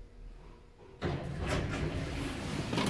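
Elevator doors slide open with a rumble.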